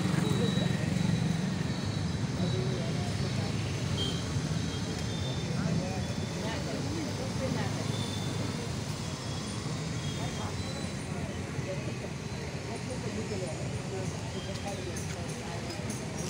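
Motorcycle engines hum and putter past on a busy street outdoors.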